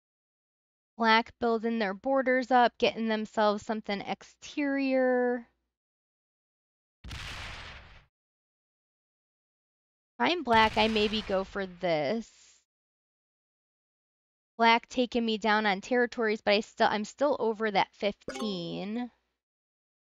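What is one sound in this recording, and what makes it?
A woman talks with animation into a close microphone.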